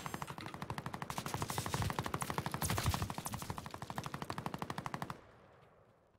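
Footsteps crunch quickly over snow.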